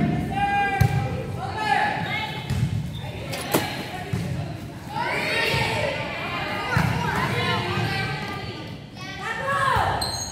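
Young women shout and call out to each other during play.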